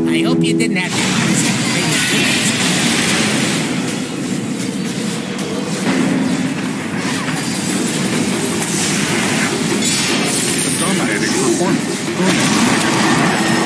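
Spell effects crackle and burst in a fast fight.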